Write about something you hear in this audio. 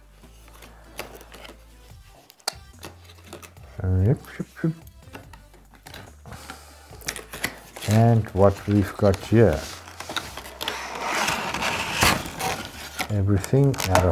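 Cardboard packaging scrapes and rustles as it is slid open.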